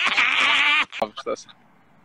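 A young man talks over an online call.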